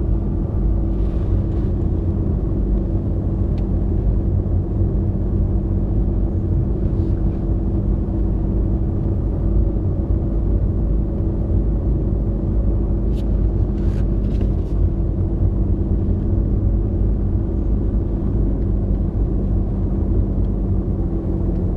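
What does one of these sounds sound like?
Tyres crunch and rumble over packed snow.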